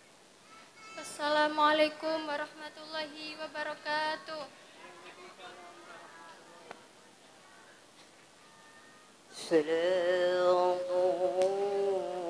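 A young girl sings through a loudspeaker in long, held notes.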